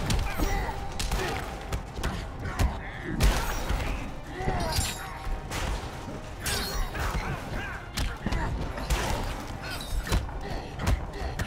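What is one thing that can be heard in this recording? Heavy punches and kicks land with sharp thuds and smacks.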